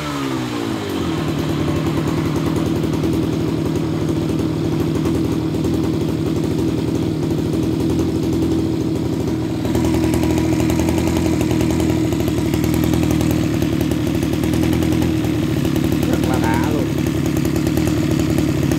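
A small two-stroke engine idles steadily, then runs a little louder.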